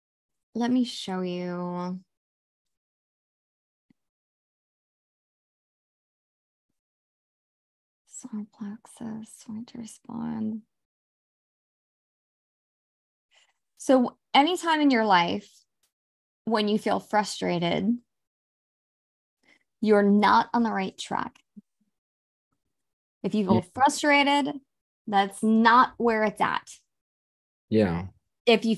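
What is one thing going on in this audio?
A young woman talks with animation over an online call, with pauses.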